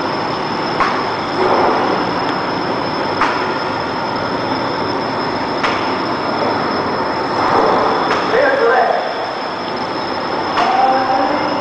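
Sharp clicks sound from the machine now and then.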